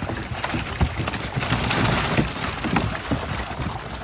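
Fish pour with a wet splash from a net into a tank.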